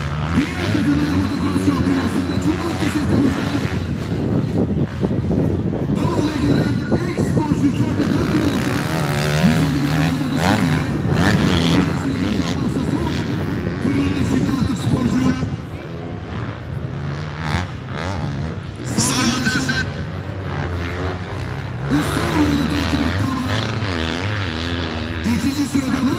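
Motocross dirt bikes rev hard over jumps outdoors.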